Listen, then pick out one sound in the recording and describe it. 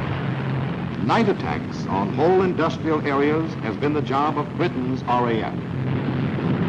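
A man speaks tersely over a crackling aircraft intercom.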